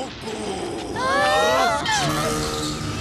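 A cartoon character cries out in a high, wavering voice.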